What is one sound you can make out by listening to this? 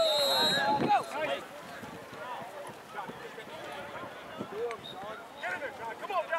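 A crowd of men and women shout and cheer outdoors at a distance.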